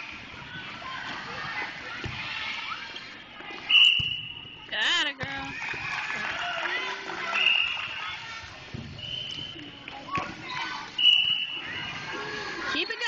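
A volleyball thumps off a player's hands.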